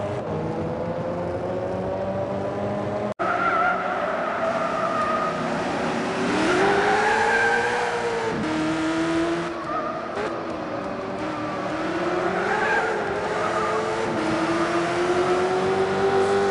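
A racing car engine roars and revs up and down as gears shift.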